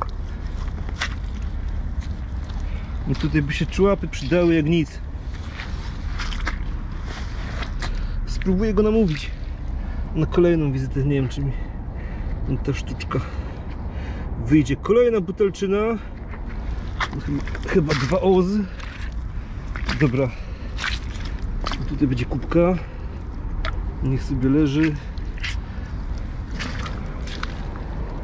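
Footsteps crunch on shells and gravel.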